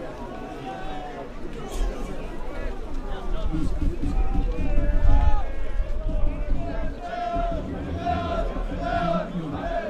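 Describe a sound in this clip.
A crowd of spectators murmurs and calls out outdoors.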